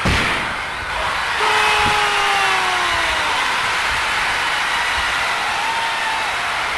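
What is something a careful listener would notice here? A stadium crowd roars and cheers loudly.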